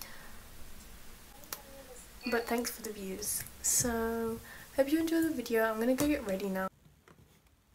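A young woman talks close up, calmly and with animation.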